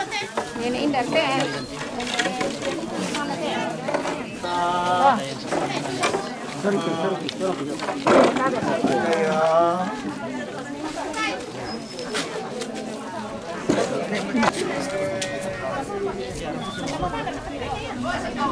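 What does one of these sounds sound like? A crowd of men and women chatter close by outdoors.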